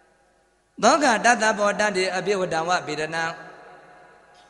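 An elderly man chants in a slow, sustained voice through a microphone.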